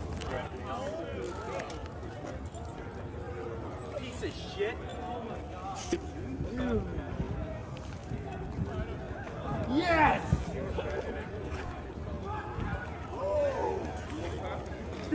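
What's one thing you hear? Young men talk and shout outdoors.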